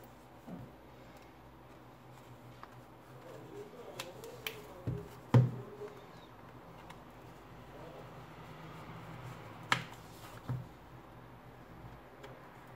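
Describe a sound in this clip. A metal pry tool clicks and scrapes against a tablet's plastic edge.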